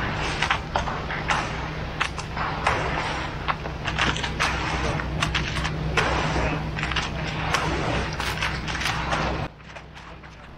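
Rakes scrape and drag through wet concrete.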